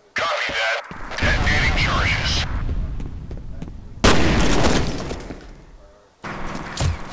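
An explosion booms and roars with fire.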